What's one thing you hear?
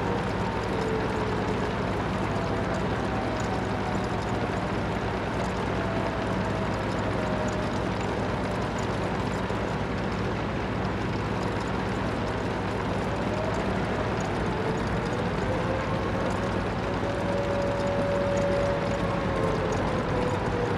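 A tank engine rumbles steadily as the tank drives along.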